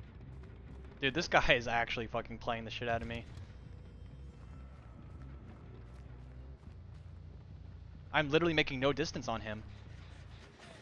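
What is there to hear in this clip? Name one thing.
A young man talks briefly and with animation, close to a headset microphone.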